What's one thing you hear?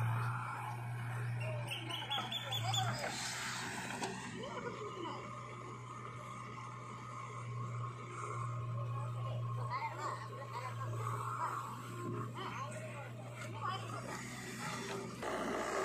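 A backhoe loader's engine runs and whines as its arm moves.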